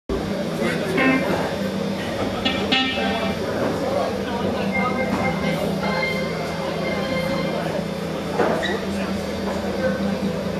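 An electric guitar plays.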